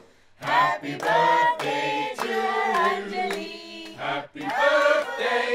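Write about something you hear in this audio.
A group of young men and women sing together in unison.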